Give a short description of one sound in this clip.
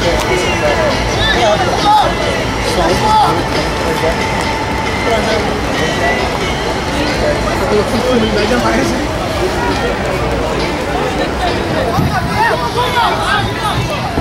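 Young men talk and argue loudly nearby.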